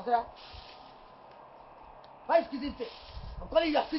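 A broom sweeps across the ground outdoors.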